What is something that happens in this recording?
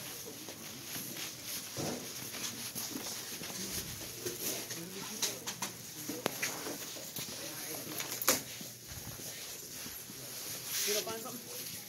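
A shopping cart rattles as it rolls over a hard floor.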